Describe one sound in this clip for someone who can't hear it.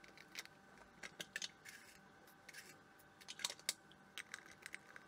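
Cups and utensils clink and clatter close by.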